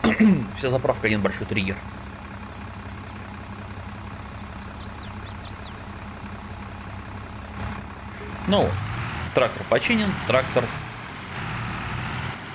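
A tractor engine hums steadily at idle.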